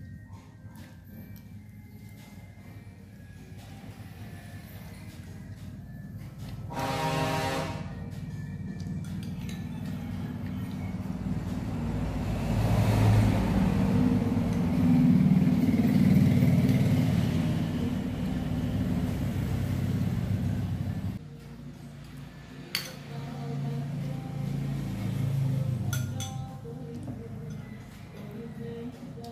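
A spoon clinks against a small bowl.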